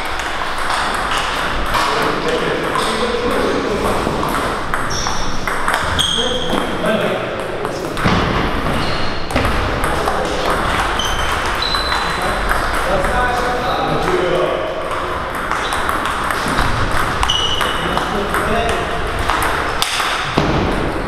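A table tennis ball clicks back and forth on paddles and a table.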